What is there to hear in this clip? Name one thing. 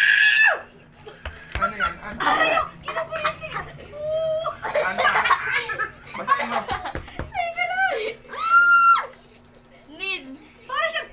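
A young woman talks and laughs loudly close by.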